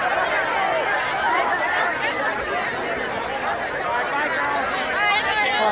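A large crowd of young people chatters and shouts excitedly outdoors.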